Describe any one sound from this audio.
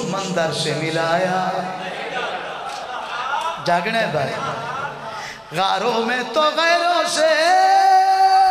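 A man speaks forcefully through a microphone.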